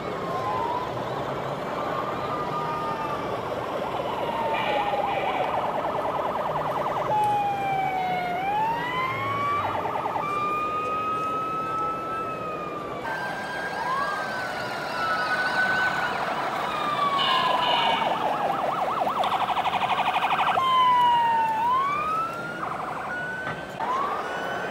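Toy fire truck sirens wail, rising and falling, with rapid electronic yelps.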